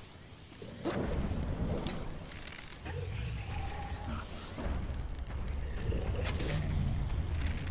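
A torch fire crackles and roars.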